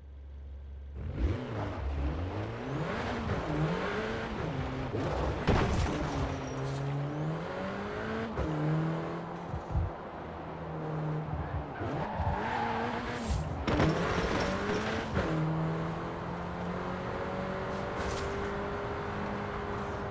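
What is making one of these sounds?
A car engine revs up and down as the car speeds along a road.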